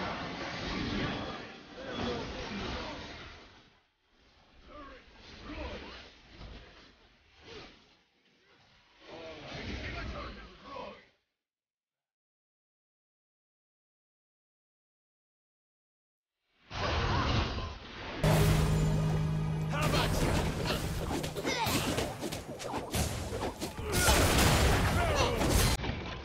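Game spells and weapons clash and boom in a busy fight.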